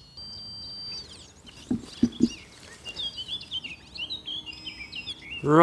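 A small trowel scrapes and knocks into loose soil.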